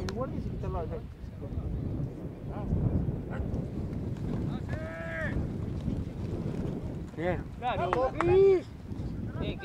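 Young men shout on an open field.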